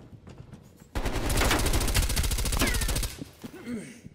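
An automatic rifle fires a rapid, loud burst of shots.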